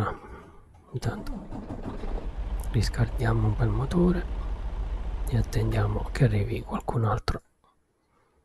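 A truck engine rumbles steadily.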